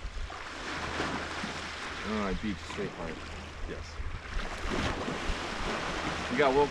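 Small waves lap gently on the shore.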